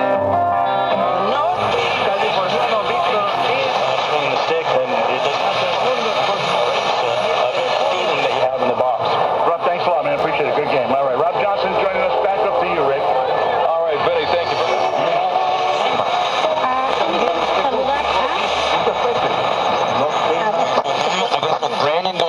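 Static hisses from a radio between stations.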